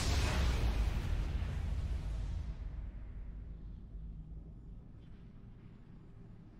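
A triumphant game fanfare booms out and slowly fades away.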